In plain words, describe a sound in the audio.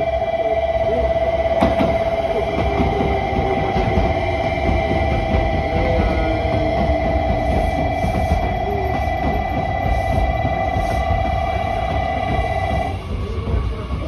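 Train brakes squeal with a steady high whine.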